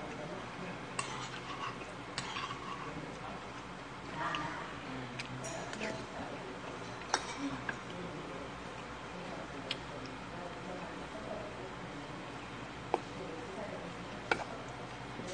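Utensils clink against dishes.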